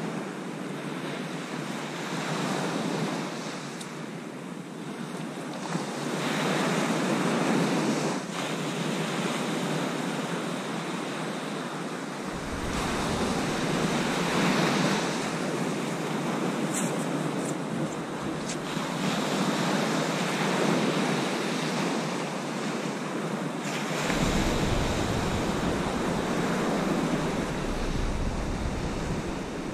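Small waves break and wash up a sandy beach.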